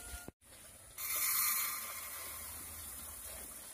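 Dry rice grains pour and patter into a metal pot.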